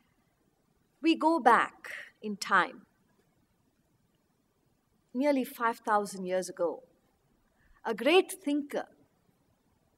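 A middle-aged woman speaks calmly and expressively close to a microphone, in short phrases with pauses.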